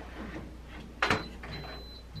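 An oven door thumps shut.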